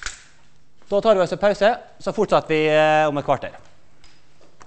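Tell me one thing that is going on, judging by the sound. A man lectures through a microphone in a large room, speaking with emphasis.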